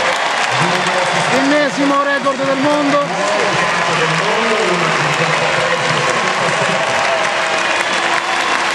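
A large crowd cheers and roars loudly in an open-air arena.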